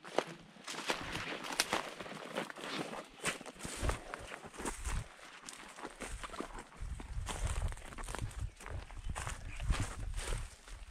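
Footsteps crunch and snap through dry grass and twigs.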